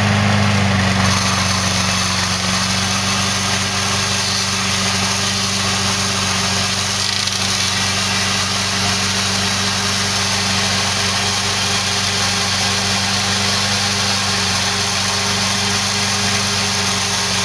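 A spinning cutter blade whirs and thrashes through weeds.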